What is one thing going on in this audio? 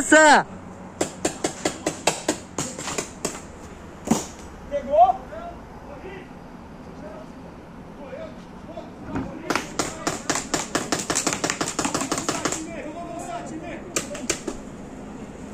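A paintball marker fires rapid bursts of shots nearby.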